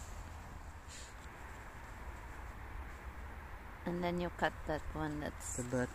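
A brush sweeps softly over a mushroom cap.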